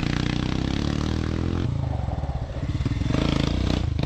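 Motorcycle tyres skid and spray loose dirt.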